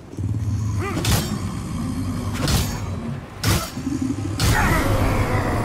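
Heavy blows strike a monster with loud thuds.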